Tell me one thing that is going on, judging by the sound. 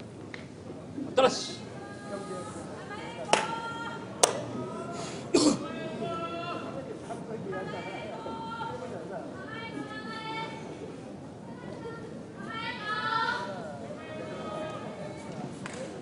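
A man calls out in a long, chanting voice in a large echoing hall.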